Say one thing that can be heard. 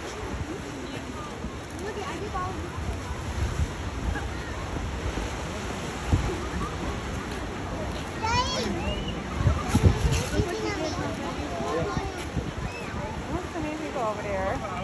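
Wind rumbles across the microphone in gusts.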